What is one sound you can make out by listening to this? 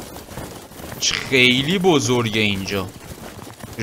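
A young man speaks into a microphone, close up.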